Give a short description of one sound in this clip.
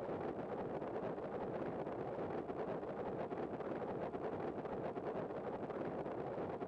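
Wind rushes loudly and steadily past.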